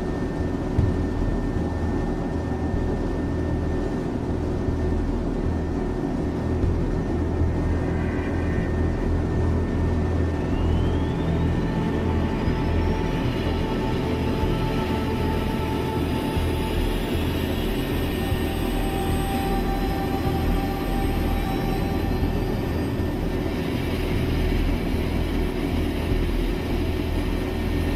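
Waves wash and splash steadily against a ship's hull.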